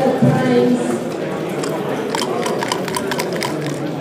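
A chess clock button is pressed with a click.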